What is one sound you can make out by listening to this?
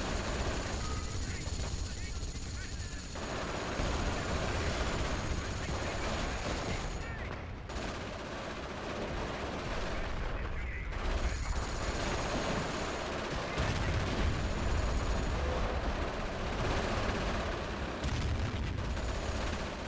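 Explosions boom and rumble again and again.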